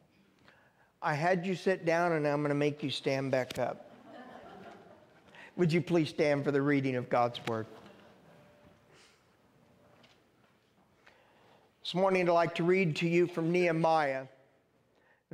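A middle-aged man speaks calmly through a microphone in a large echoing room.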